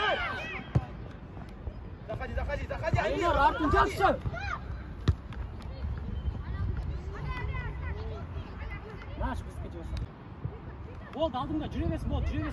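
Young children shout excitedly outdoors.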